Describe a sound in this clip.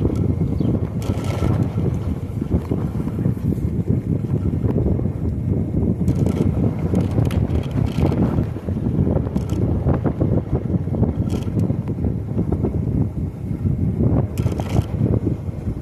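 A bicycle rattles over bumps.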